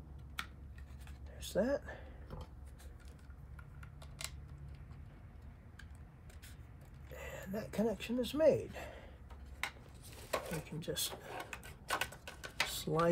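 Hard plastic parts click and knock as they are handled.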